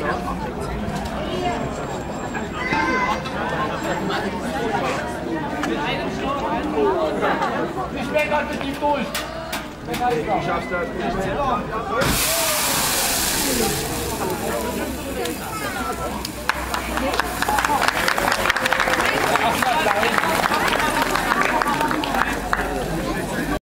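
A crowd of children and adults chatter outdoors.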